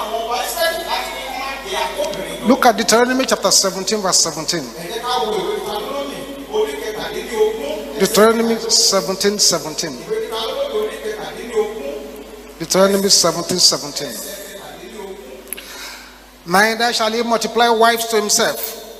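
A man preaches with fervour into a microphone, his voice loud and echoing.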